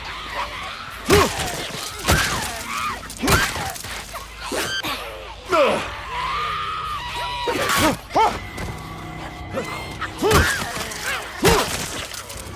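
Heavy melee blows land with thuds and crunches.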